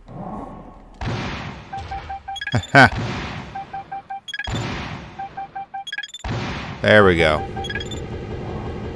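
Missiles and gunfire blast in quick bursts.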